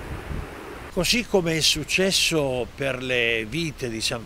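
An elderly man speaks calmly and clearly, close to a microphone.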